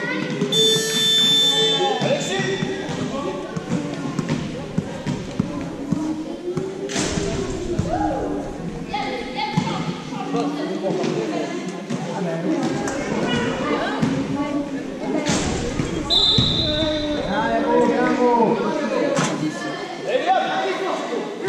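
Adults talk casually close by in a large echoing hall.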